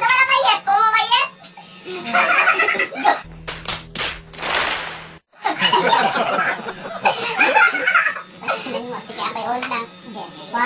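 Young men laugh and talk loudly close by.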